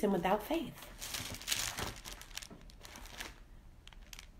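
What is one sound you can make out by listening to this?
Paper rustles as a woman handles it.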